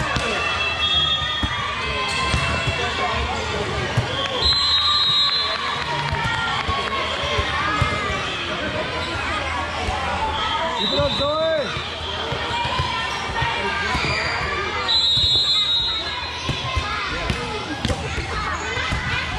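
Many young girls and adults chatter and call out in a large echoing hall.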